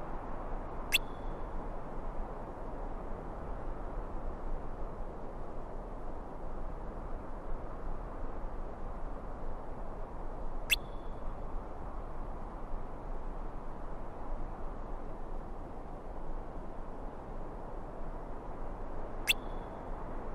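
A short, soft chime sounds as a line of dialogue comes up.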